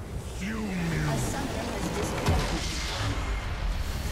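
Magic blasts and impacts crash in a fast game fight.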